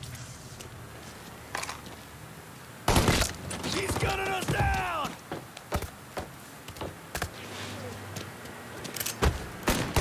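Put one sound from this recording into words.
Footsteps thud on a hard rooftop.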